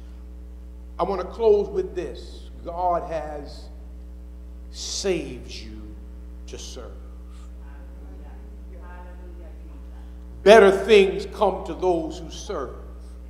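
A man speaks slowly and with pauses through a microphone in a large echoing hall.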